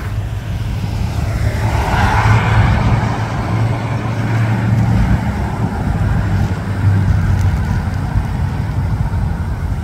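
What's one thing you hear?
A classic car drives past with a low engine rumble.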